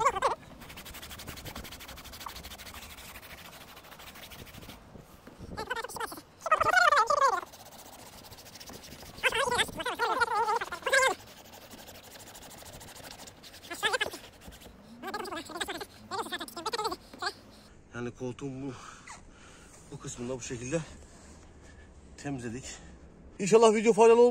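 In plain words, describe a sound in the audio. A cloth rubs against a fabric seat.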